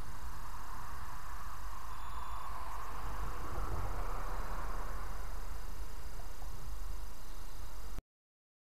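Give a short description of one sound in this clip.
Wind rustles the leaves of trees outdoors.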